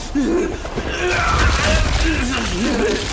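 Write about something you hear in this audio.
Water splashes heavily as a body falls into it.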